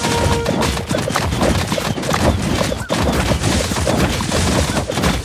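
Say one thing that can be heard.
Game sound effects pop and chime in quick succession.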